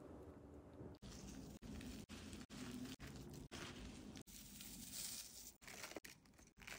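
Metal spoons toss and scrape through a crunchy mix in a glass bowl.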